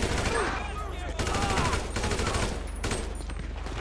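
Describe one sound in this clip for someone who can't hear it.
A rifle fires several gunshots.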